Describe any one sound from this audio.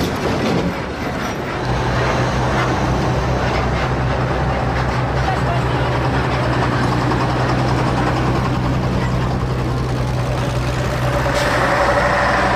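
Large tyres roll over a paved road.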